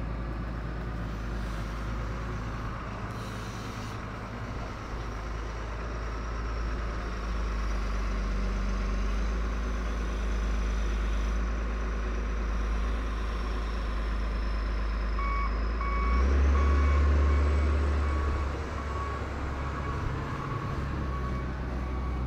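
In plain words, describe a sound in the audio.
A heavy diesel engine rumbles steadily nearby.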